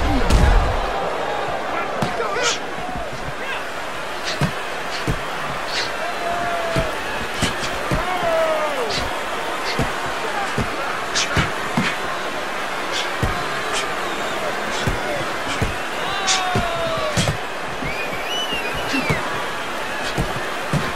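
A large crowd cheers and murmurs steadily.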